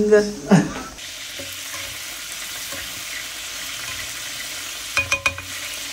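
Vegetables sizzle softly in a frying pan.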